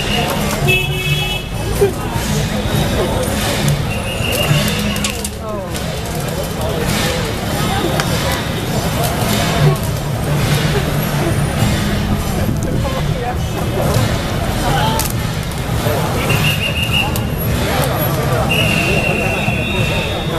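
Wooden parade carts rattle as they are pushed along.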